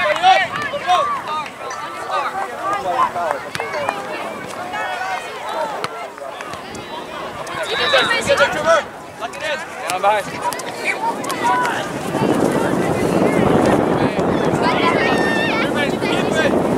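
Spectators shout and cheer outdoors at a distance.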